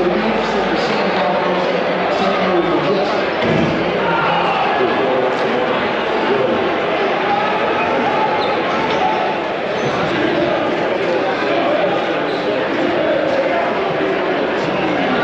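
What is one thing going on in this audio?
A crowd of men and women murmurs and chatters in a large, echoing hall.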